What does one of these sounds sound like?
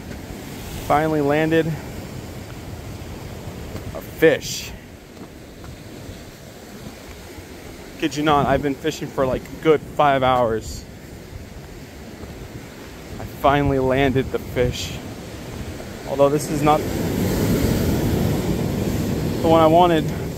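Waves wash against rocks nearby.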